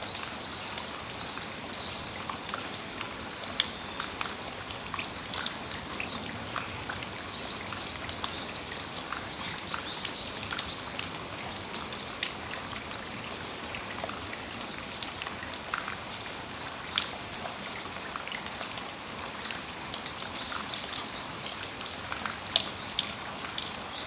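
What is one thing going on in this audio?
Raindrops drip and tap on a metal awning.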